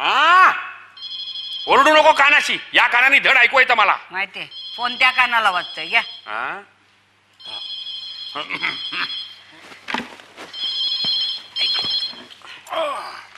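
A telephone rings repeatedly.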